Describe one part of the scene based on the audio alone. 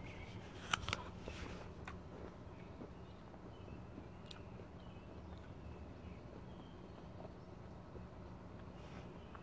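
A man chews a mouthful of apple.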